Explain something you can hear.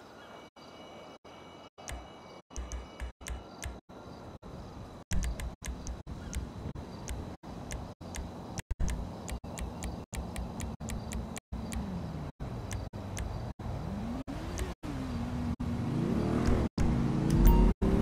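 Short menu blips click as options change.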